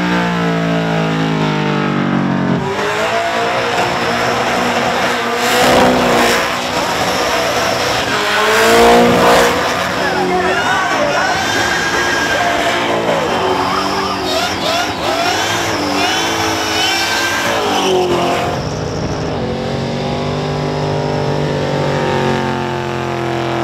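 An engine roars and revs hard.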